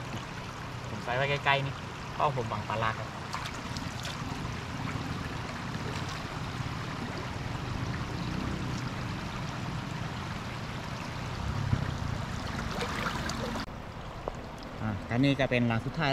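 Floodwater rushes and gurgles steadily.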